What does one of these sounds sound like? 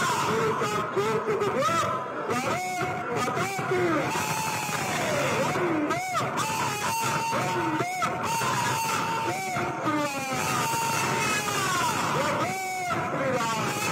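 A man speaks loudly into a microphone over loudspeakers.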